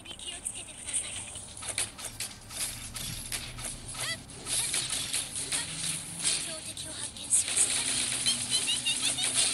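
Swords slash and whoosh in quick bursts.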